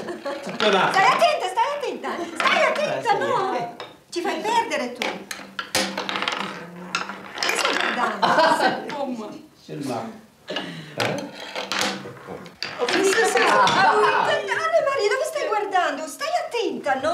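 Wooden game pieces click on a board.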